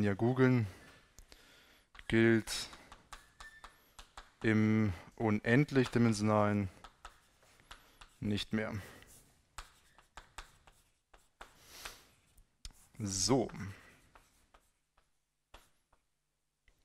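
Chalk taps and scrapes on a blackboard.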